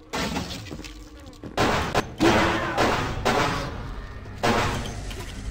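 A pistol fires several loud shots that ring out in a room.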